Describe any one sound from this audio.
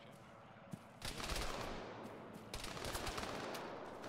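Gunfire crackles in rapid bursts close by.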